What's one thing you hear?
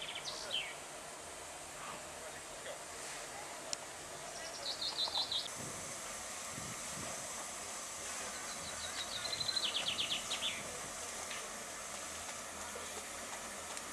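A narrow-gauge steam locomotive stands at rest, softly hissing steam.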